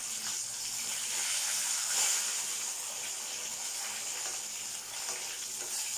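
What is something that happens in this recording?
Metal tongs clink against a pot.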